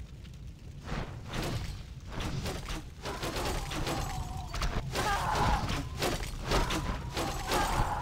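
Weapons clash and strike repeatedly in a battle.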